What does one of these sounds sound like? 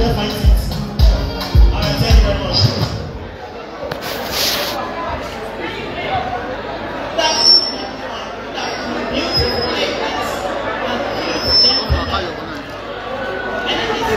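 A crowd chatters in the background.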